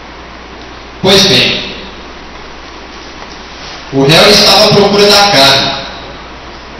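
A man speaks loudly in a room with some echo.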